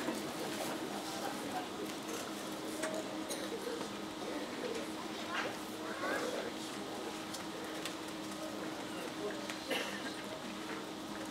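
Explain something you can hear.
An audience murmurs quietly.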